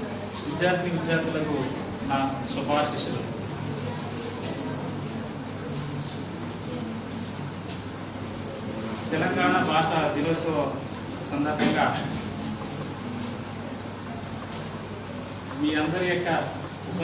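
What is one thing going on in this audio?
A middle-aged man speaks in bursts to an audience in a room with some echo.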